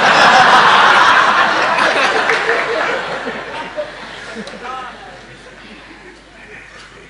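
An elderly man laughs softly into a microphone.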